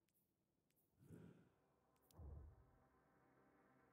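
A deep whooshing swell rises and fades twice.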